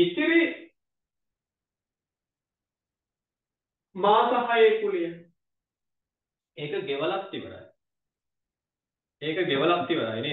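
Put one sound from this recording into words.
A man speaks calmly in bursts, as if teaching, heard close through a microphone.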